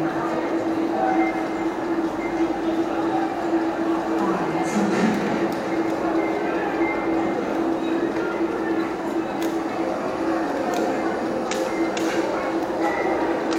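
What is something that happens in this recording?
A small group of men and women chat quietly nearby.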